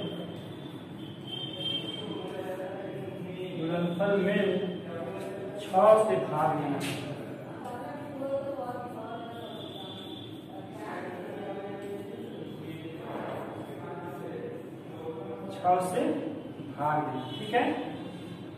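A young man speaks calmly, explaining in an echoing room.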